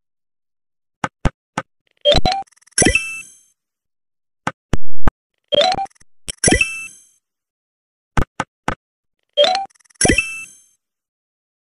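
Short bright chimes and clicks sound in quick bursts.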